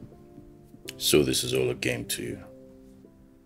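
A man speaks in a low, troubled voice.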